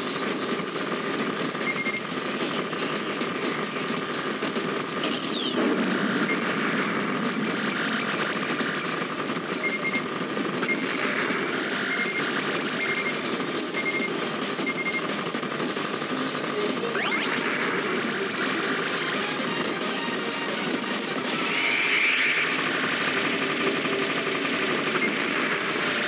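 Rapid electronic shots rattle on without a break.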